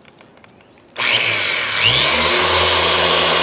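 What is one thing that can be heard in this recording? A polishing machine whirs loudly against a car's paint.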